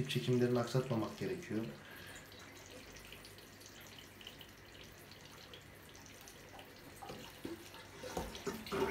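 Water sloshes softly as a hand moves in it.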